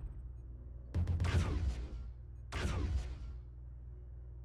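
A heavy laser weapon fires with a loud crackling blast.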